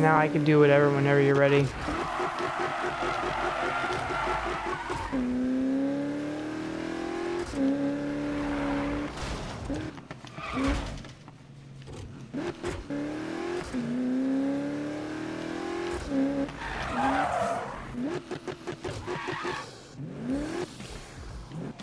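A car engine revs hard, rising and falling in pitch with gear changes.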